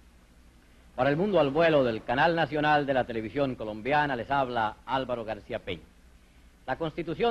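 A man speaks calmly and clearly into a microphone, like a news announcer.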